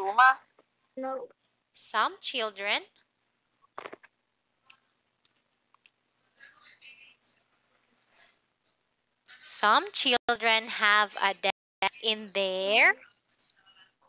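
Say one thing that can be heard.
A young woman speaks expressively over an online call, in a teaching tone.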